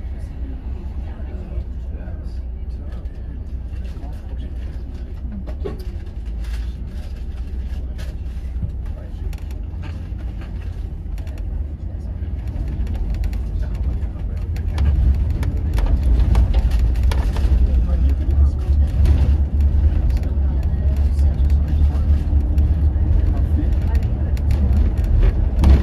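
Traffic passes by on the road outside.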